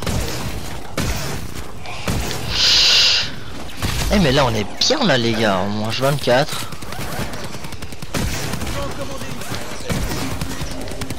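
An energy gun fires in rapid bursts.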